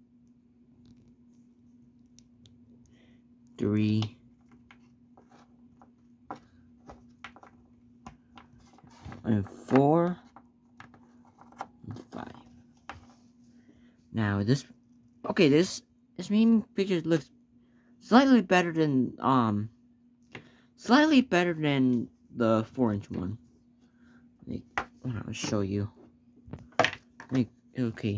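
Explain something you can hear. Hands handle a small plastic toy figure with soft clicks and rubbing.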